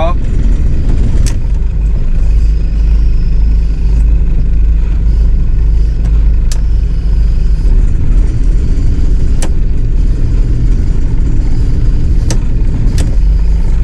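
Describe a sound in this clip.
A boat's engine rumbles low and steady from inside the cabin.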